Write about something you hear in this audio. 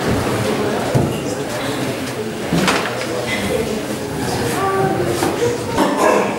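A man speaks steadily, as if lecturing, in an echoing room.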